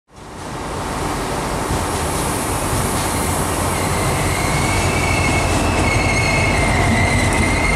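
A diesel locomotive rumbles past up close.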